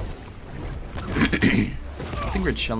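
A heavy punch lands with a thud.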